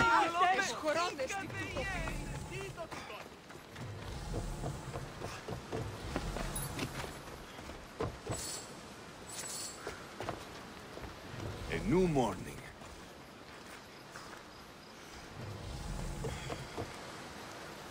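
Footsteps run over dirt and wooden planks.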